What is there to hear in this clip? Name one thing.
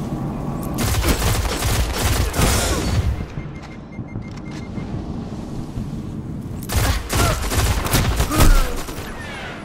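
Video game gunfire rattles out in bursts.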